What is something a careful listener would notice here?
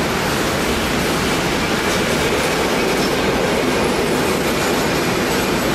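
A long freight train rumbles and clatters loudly past on the rails.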